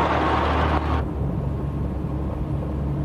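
A truck engine hums steadily from inside the cab.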